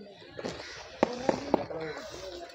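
A trowel taps on bricks.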